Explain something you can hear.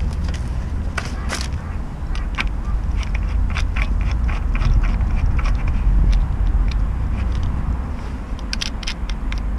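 Metal parts click and rattle as a clutch is handled.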